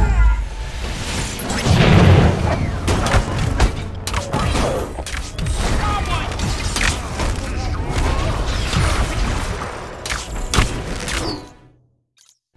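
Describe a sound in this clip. Explosions boom and rumble in rapid bursts.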